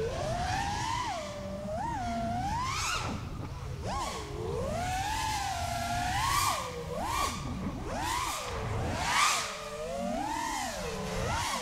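A small racing drone's motors whine loudly, rising and falling sharply in pitch as it speeds and swerves.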